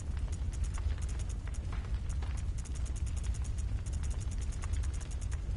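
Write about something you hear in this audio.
Short electronic menu ticks click rapidly and repeatedly.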